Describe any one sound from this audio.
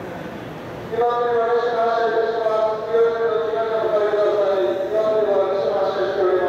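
A train horn sounds loudly.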